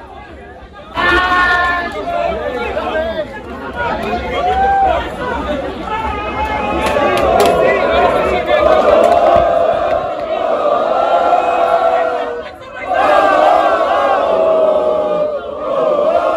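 A large crowd of football fans chants and sings in unison outdoors.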